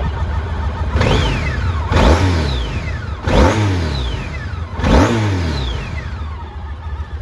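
A motorcycle engine revs up sharply several times and falls back.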